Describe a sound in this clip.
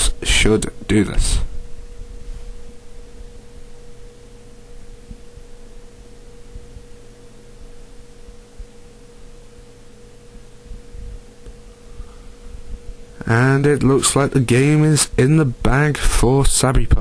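A video game's electronic battle tune plays softly.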